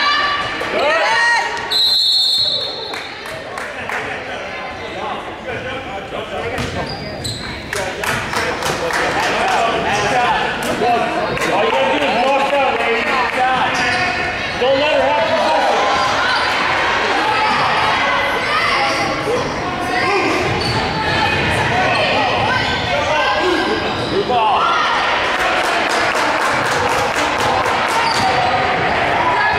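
Young women on the court call out and chatter.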